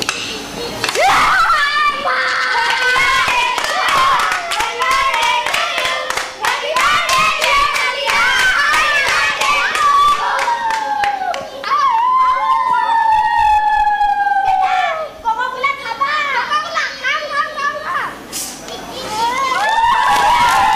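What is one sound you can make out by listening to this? Several young men shout and chant loudly together.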